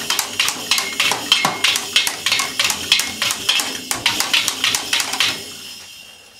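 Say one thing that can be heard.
A toddler bangs rapidly on a toy drum kit with sticks, the cymbal clattering.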